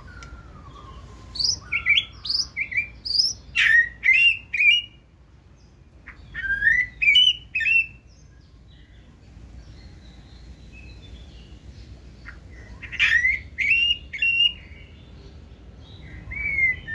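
A songbird sings loud, varied whistling phrases close by, in bursts with short pauses.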